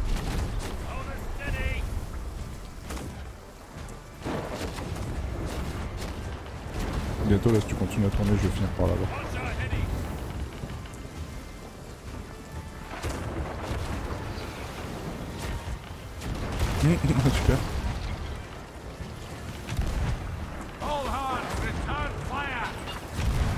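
Stormy sea waves crash and roar.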